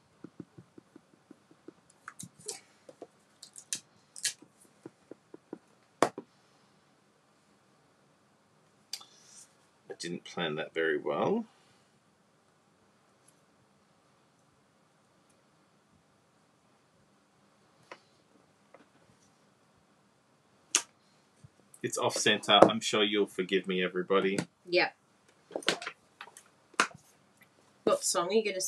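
Hands tap and click small plastic pieces on a table.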